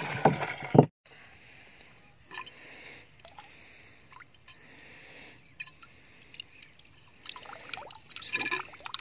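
Water trickles from a pipe into a shallow pool.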